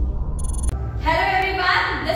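A young woman speaks cheerfully and clearly, close to a microphone.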